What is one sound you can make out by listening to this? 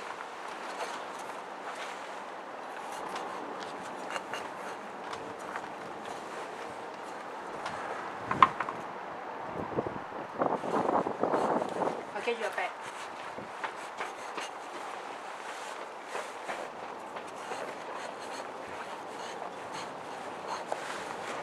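A knife cuts and scrapes through the flesh of a melon.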